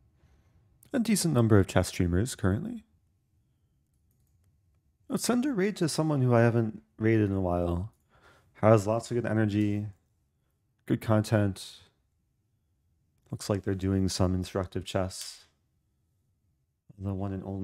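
A young man speaks calmly and close into a microphone, in short bursts with pauses.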